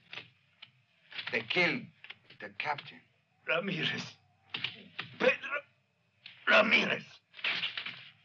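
A man speaks nearby in a low, tense voice.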